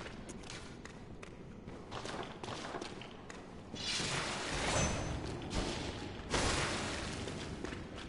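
Footsteps scuff on a stone floor.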